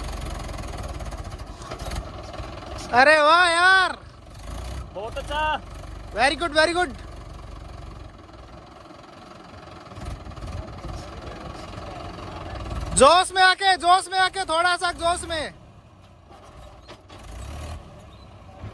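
A tractor engine rumbles and idles nearby.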